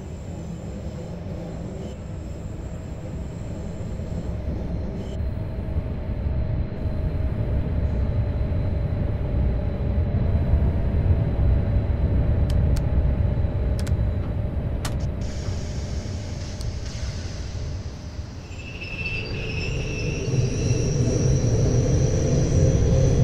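Rain patters steadily on a train's windscreen.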